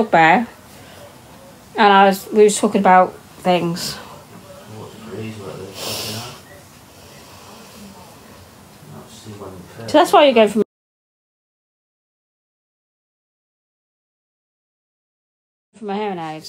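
A middle-aged woman speaks casually, close to a phone microphone, in short bursts with pauses.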